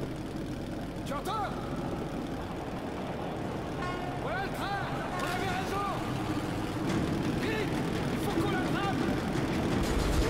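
A man speaks urgently close by.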